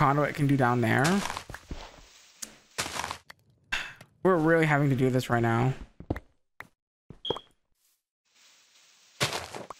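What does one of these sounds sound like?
Dirt crunches as it is dug out block by block.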